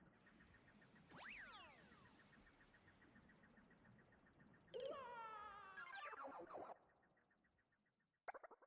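Light electronic game music plays with a quick, steady pulse.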